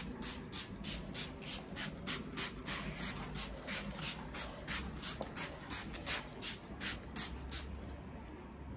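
A spray bottle hisses in quick, repeated squirts.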